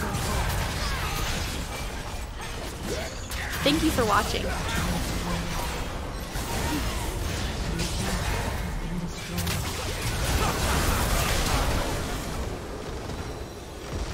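Spell blasts and clashes crackle and boom in a video game battle.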